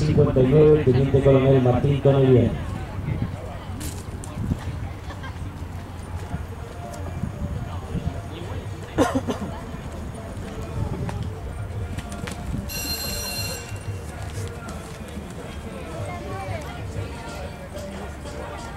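A horse's hooves thud softly on grass as it canters.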